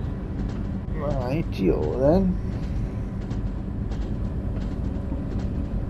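Rails clack under a moving train.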